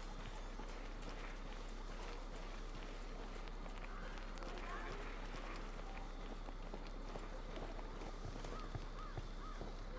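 Footsteps crunch on dirt and gravel at a steady walking pace.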